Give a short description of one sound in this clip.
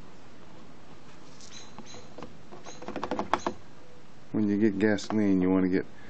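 Liquid pours from a plastic bottle into a plastic can.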